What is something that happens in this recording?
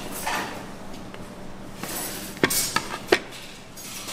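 A plate clinks down onto a hard table.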